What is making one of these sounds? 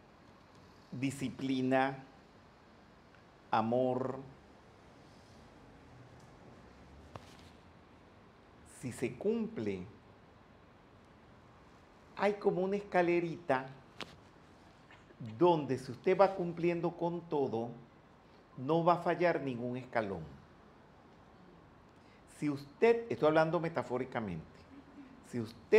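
An elderly man speaks with animation into a handheld microphone, with pauses.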